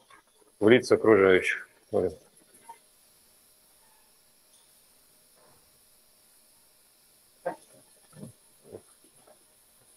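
A man speaks calmly through a microphone, with long pauses.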